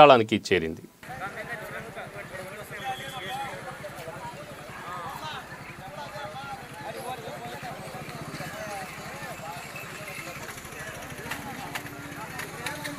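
Men and women chatter faintly in the background.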